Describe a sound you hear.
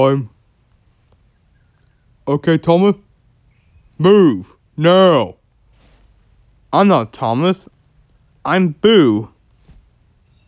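A man speaks in exaggerated, sing-song character voices in short bursts, close to a microphone.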